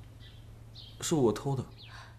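A young man answers in a low voice.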